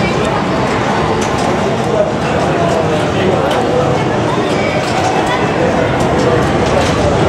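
Arcade and pinball machines beep and jingle.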